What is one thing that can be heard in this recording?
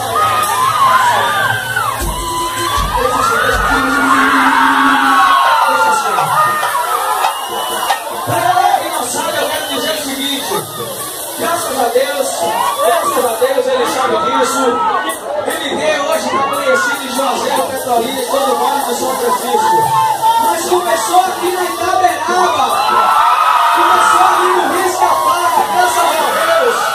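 A large crowd shouts and sings loudly throughout.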